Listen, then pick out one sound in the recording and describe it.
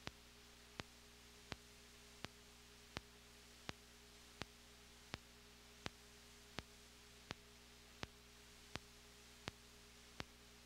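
A synthesizer clicks out a steady, even beat.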